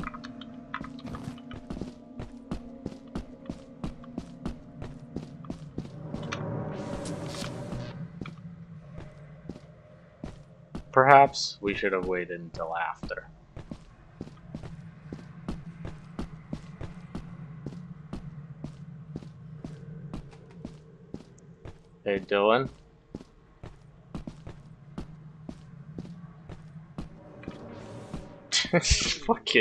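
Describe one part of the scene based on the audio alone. Footsteps crunch steadily over gravelly ground.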